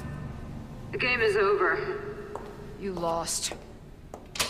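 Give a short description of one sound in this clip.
A young woman calls out from a distance.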